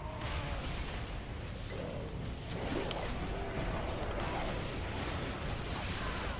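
Game spell effects whoosh and crackle during a fight.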